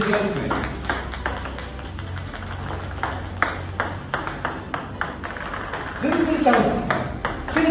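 Table tennis balls click and bounce on a table.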